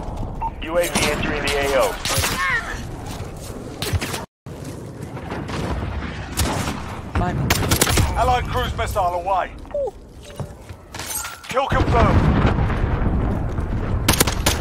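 Suppressed gunshots fire in quick bursts.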